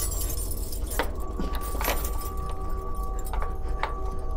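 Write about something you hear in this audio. A key scrapes and clicks in a lock.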